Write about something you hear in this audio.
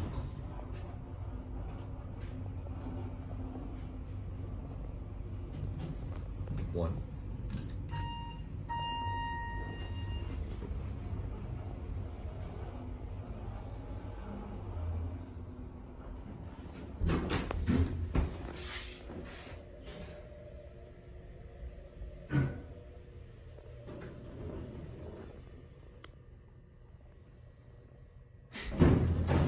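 An elevator hums low and steadily as it moves.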